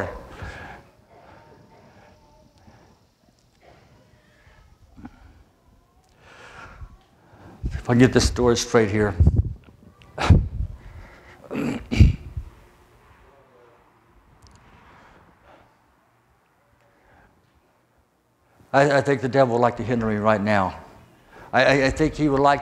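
An elderly man speaks with feeling into a microphone in a large room.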